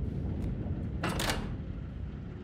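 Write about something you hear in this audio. A heavy metal lever clunks into place.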